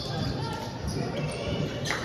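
A volleyball thuds as a player bumps it.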